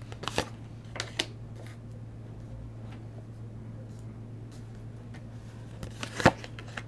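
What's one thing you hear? Cards slide and tap on a table.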